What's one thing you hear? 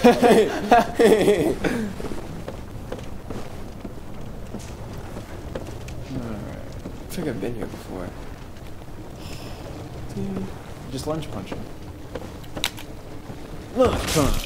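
Armoured footsteps thud on wooden planks.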